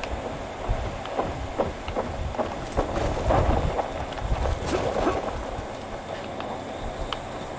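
Footsteps squelch through shallow water and mud.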